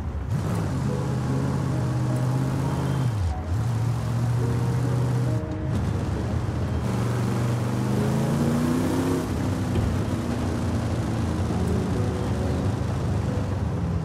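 Tyres screech on pavement as a car drifts.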